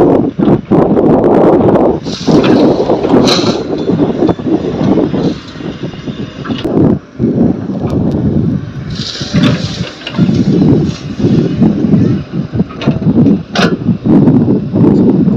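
A metal bucket clanks now and then.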